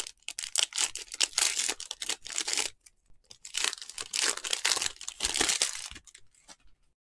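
Hands crinkle and tear open a foil wrapper.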